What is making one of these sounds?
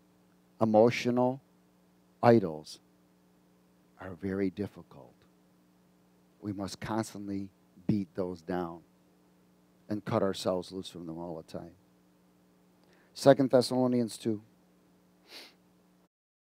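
A middle-aged man preaches with animation through a headset microphone.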